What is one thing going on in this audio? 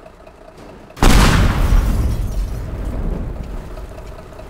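A loud crash of vehicles smashing together, with clattering debris.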